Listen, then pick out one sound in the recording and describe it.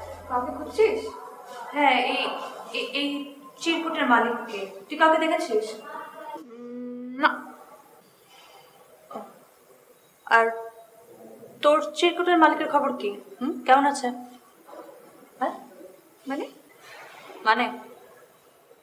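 A second young woman answers calmly close by.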